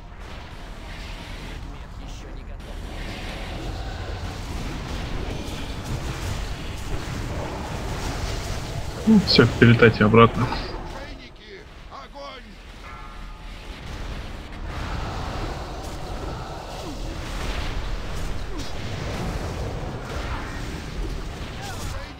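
Magic spells crackle and burst during a battle.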